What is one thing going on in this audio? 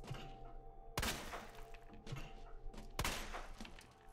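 A pistol fires loud shots in an echoing corridor.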